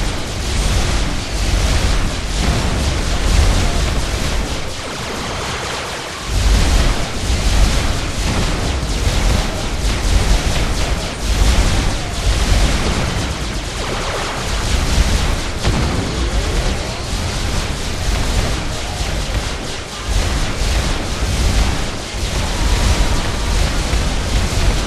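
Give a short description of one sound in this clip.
Video game blasts and explosions crackle rapidly.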